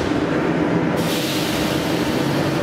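Train doors hiss and slide shut.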